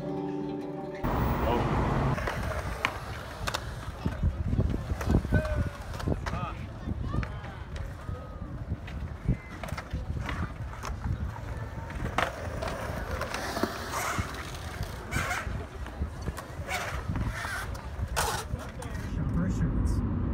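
Skateboard wheels roll and rumble across concrete.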